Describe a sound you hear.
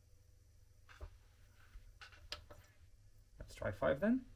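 Hands tap and click on a device.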